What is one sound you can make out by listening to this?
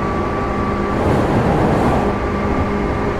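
A passing train rushes by close alongside.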